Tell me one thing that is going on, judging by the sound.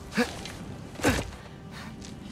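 A person lands heavily with a thud.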